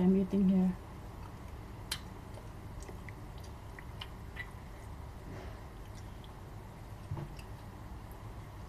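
Food crunches softly as it is handled and eaten.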